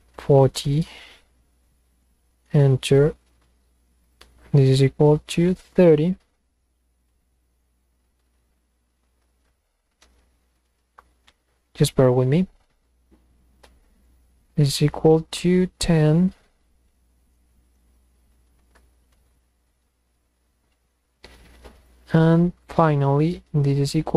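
A young man speaks calmly and closely into a microphone, in short bursts with pauses.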